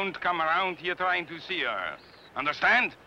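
A young boy speaks in a high voice, close by.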